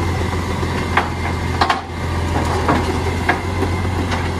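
A wheelie bin bangs as it is emptied into a truck.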